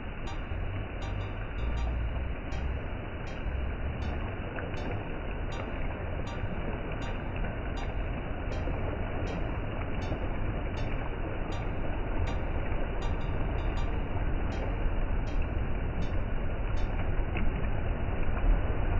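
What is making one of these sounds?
Waves wash and splash over rocks.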